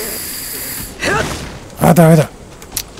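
Flames burst with a roaring whoosh.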